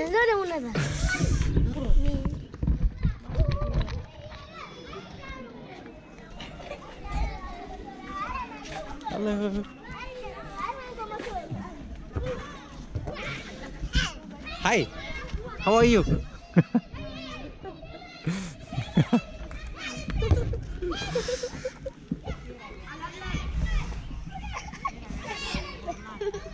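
Children shout and chatter nearby outdoors.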